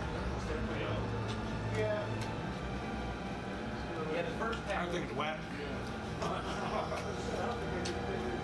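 Two men chew and eat with soft mouth sounds.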